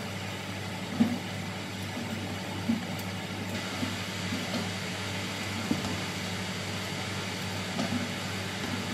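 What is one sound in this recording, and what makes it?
Metal pot lids clatter and clang.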